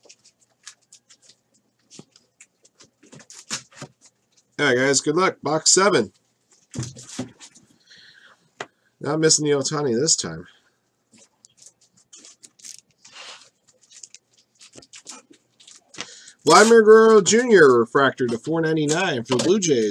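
Trading cards riffle and slide against each other in someone's hands.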